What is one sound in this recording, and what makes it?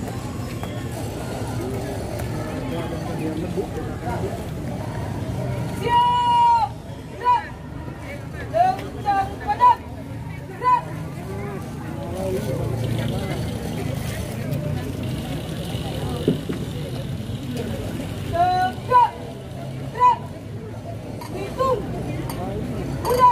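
A crowd of onlookers murmurs in the background.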